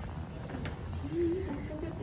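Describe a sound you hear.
A young woman speaks playfully close by.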